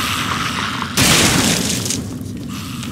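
A gun fires a single loud shot that echoes.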